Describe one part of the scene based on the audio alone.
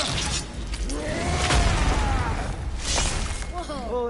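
Ice shatters with a loud crash.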